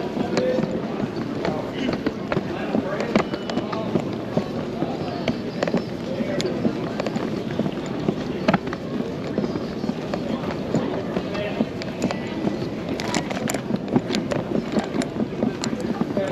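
Footsteps tap steadily on a hard floor close by.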